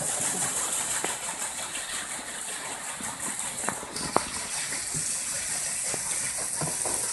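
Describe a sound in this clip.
A wooden water wheel knocks and creaks as it turns.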